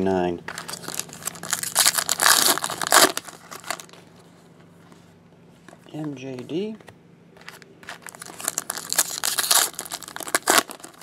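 Hands tear open foil card packs with a crinkling rustle.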